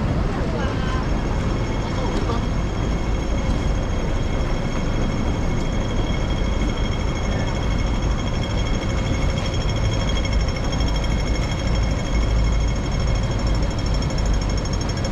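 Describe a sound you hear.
A pedestrian crossing signal ticks rapidly.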